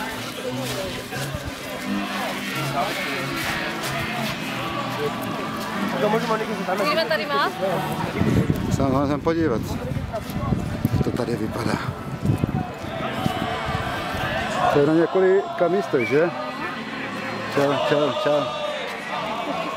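A crowd of men and women chatter outdoors nearby.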